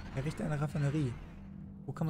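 A spaceship engine roars.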